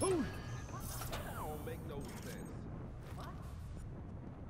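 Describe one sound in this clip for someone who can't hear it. A young man talks casually into a microphone.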